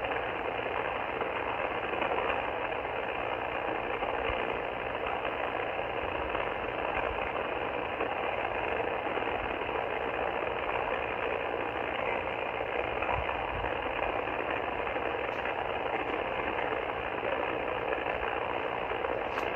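A radio receiver hisses with steady static from its speaker.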